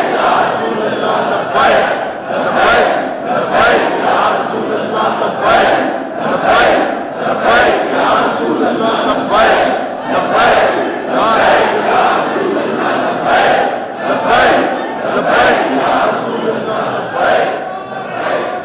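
A crowd claps hands in a steady rhythm.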